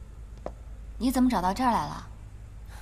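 A young woman asks a question in surprise, close by.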